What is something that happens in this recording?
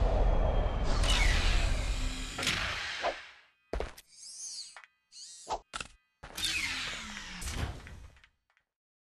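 A spaceship's engines roar and whoosh past.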